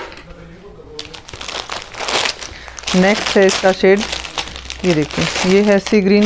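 A plastic packet crinkles as hands handle it.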